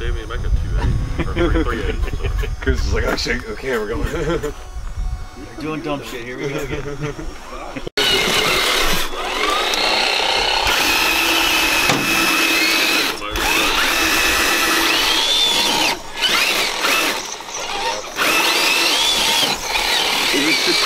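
Small electric motors whine as toy trucks crawl over dirt.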